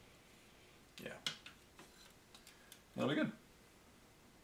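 A plastic model clatters lightly as it is picked up and turned by hand.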